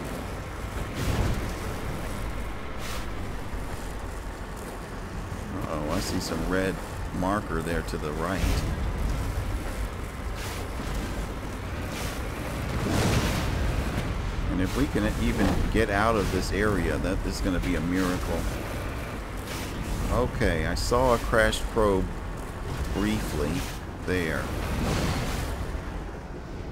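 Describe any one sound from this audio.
A vehicle's engine rumbles steadily as it climbs over rough ground.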